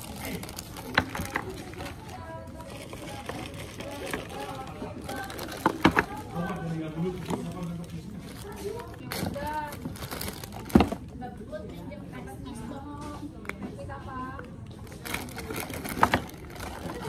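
Plastic containers clink and knock together.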